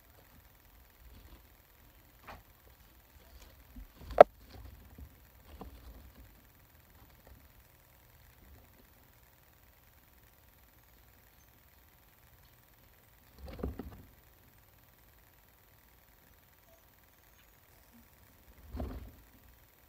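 Small animals rustle and scratch about in dry bedding.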